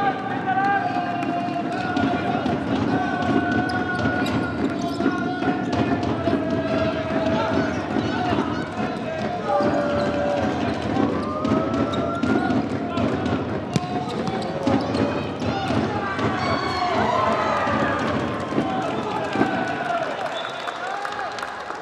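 Young men shout to each other across an echoing hall.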